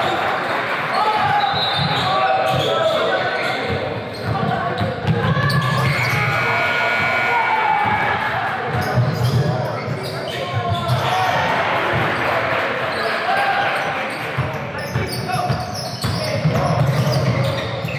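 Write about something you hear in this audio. Voices of a crowd of young people chatter and call out in a large echoing gym.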